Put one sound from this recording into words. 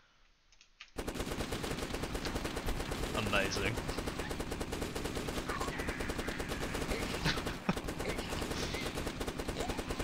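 Guns fire in rapid, steady bursts.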